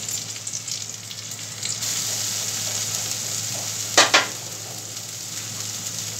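A metal slotted spoon scrapes and clinks against a pan.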